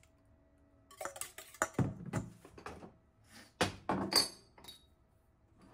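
A wire whisk clinks and rattles against a metal bowl.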